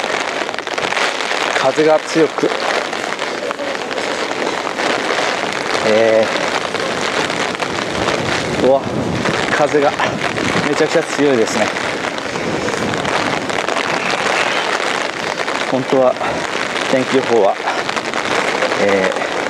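Rain patters steadily on wet pavement outdoors.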